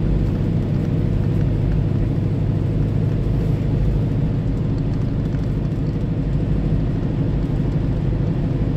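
Tyres roll on a wet road surface.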